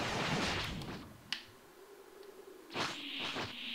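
An energy aura crackles and hums.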